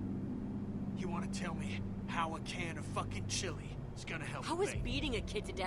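A gruff middle-aged man speaks harshly.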